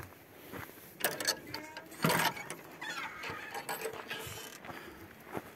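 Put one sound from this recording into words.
A wooden gate rattles and creaks as it is pushed open.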